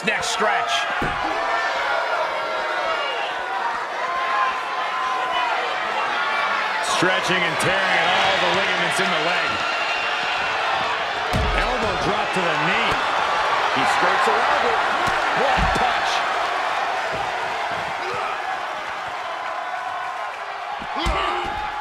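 A wrestler slams into the floor with heavy thuds.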